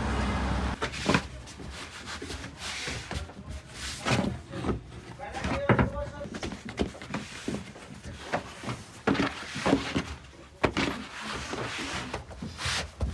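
Hands slap and pat dough on a wooden table.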